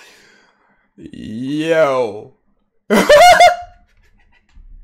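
A young man shouts and laughs loudly into a microphone.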